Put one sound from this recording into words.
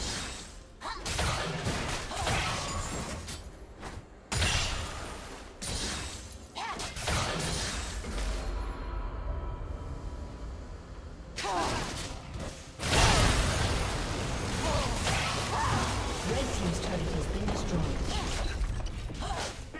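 Spells and melee hits from a video game battle crackle and boom.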